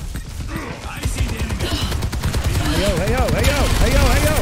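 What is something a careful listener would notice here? Gunfire from a video game bursts rapidly.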